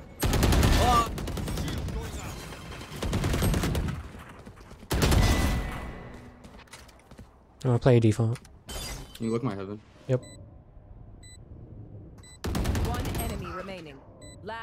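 Game ability effects burst with loud whooshing blasts.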